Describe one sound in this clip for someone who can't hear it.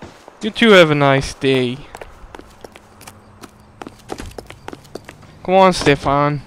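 Footsteps tap on a hard floor and pavement.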